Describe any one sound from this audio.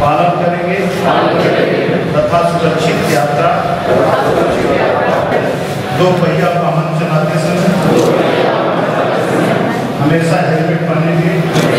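A man speaks firmly into a microphone, leading a pledge.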